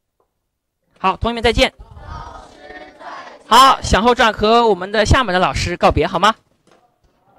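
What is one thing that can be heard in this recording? A group of children read aloud together in unison.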